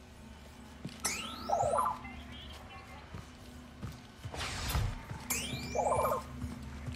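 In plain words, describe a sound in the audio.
A small robot chirps and beeps electronically.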